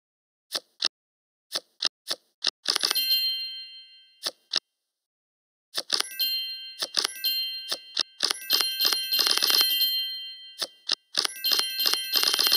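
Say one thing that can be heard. Short electronic clicks and chimes sound as cards are placed in a game.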